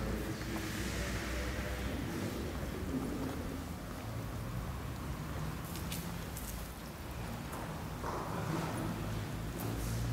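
An elderly man speaks calmly in a large echoing hall.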